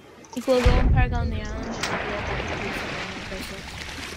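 Water splashes and rushes around a swimmer.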